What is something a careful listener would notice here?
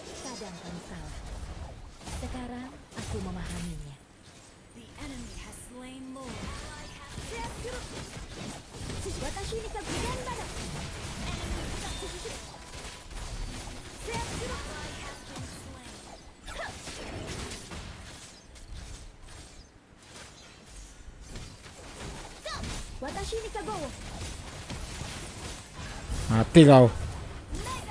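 Game sound effects of spells and blows play.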